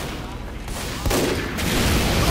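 Gunfire cracks nearby.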